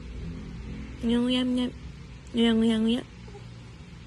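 A baby coos in short, high, sing-song sounds close by.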